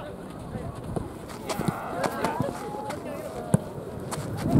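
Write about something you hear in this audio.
A soccer ball is kicked with a dull thump.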